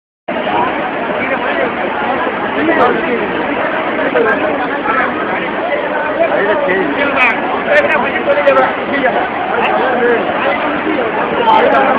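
Floodwater rushes and churns loudly.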